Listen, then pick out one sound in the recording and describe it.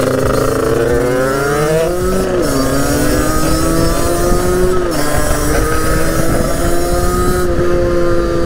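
A motorcycle engine revs up close and drops as it shifts gears.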